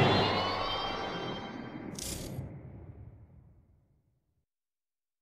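A racing car engine roars and fades away.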